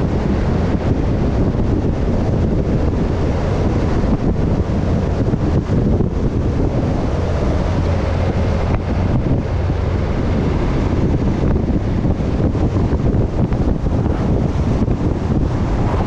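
Tyres roll on smooth asphalt.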